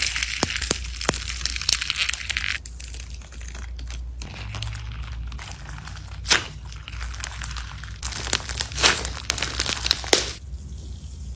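Beads crackle and pop as soft slime is squeezed.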